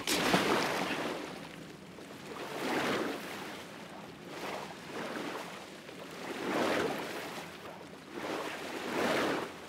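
Water sloshes and swirls with steady swimming strokes.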